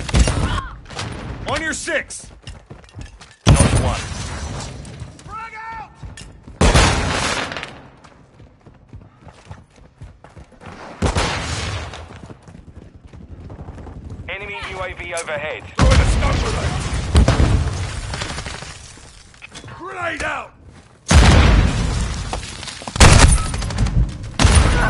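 Guns fire in loud, sudden bursts of rapid shots.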